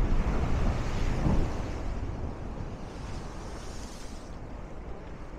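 Waves crash and splash against rocks close by.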